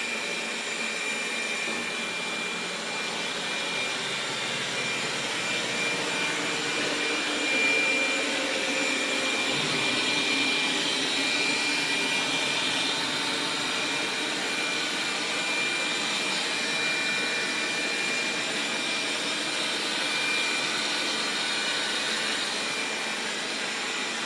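A robot vacuum cleaner hums and whirs steadily as it moves across the floor.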